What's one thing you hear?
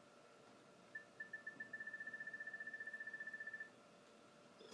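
A rapid electronic ticking runs for a few seconds, then stops.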